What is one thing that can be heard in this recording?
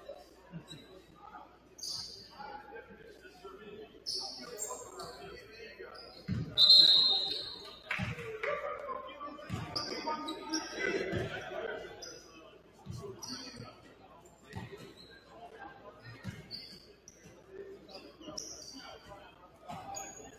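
Players and spectators talk and call out in the echoing hall.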